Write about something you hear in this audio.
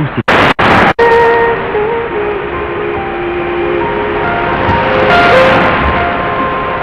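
A distant radio station fades in through the static with faint wavering tones.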